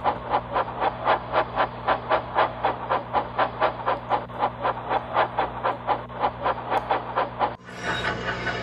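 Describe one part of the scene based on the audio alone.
A steam engine chuffs in a steady rhythm as it rolls along, heard through a television speaker.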